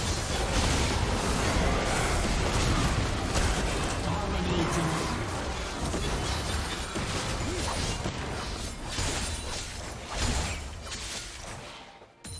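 Game spells whoosh and blast in a busy fight.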